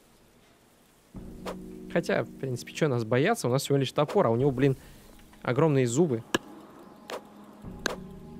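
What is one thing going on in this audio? An axe chops into a wooden log with dull thuds.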